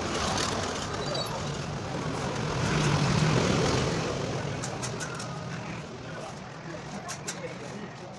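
Street traffic hums outdoors.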